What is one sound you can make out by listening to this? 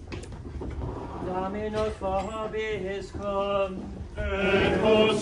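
A group of men and women sing a hymn together in a room with some echo.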